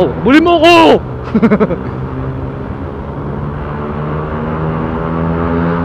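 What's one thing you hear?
A scooter engine hums steadily, slowly rising in pitch as the scooter speeds up.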